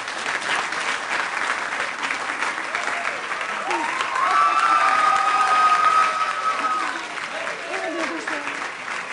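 A crowd applauds and cheers in a room.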